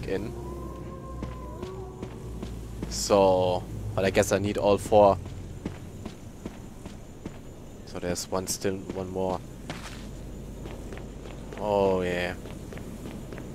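Footsteps crunch slowly over gravel and stone.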